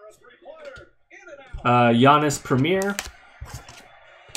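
Hands shuffle trading cards with soft flicks and clicks.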